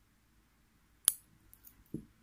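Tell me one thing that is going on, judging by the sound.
A wire cutter snips a thin wire with a sharp click.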